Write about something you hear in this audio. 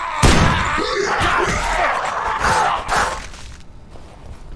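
Heavy blows strike a body with wet, squelching thuds.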